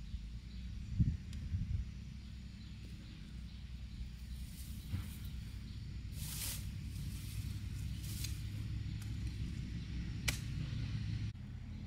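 A hoe chops and scrapes into dry soil.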